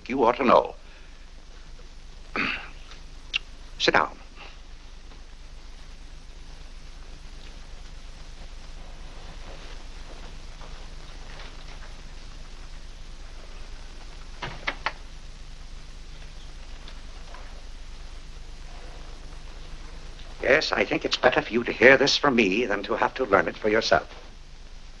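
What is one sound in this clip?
An older man speaks sternly, close by.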